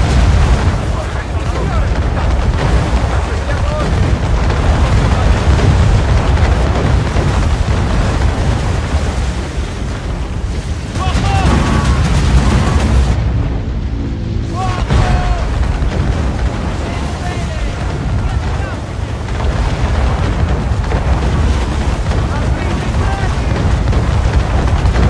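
A stormy wind roars steadily.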